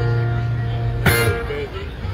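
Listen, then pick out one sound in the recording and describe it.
A guitar chord rings out and is cut short.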